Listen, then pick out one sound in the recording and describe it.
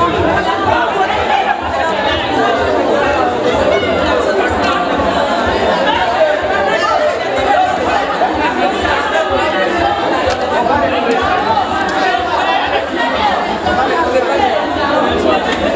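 A crowd of men and women chatter loudly all around, close by, in an echoing room.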